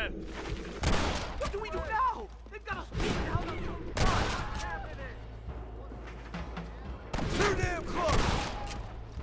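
Gunshots crack loudly, one after another.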